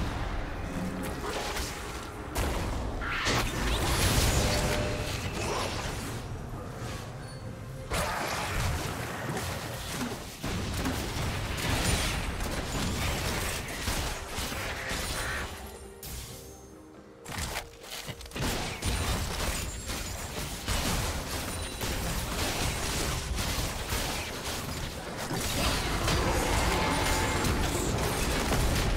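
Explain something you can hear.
Video game spell effects whoosh and crash during a fight.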